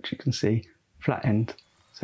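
Small metal parts clink as they are picked up.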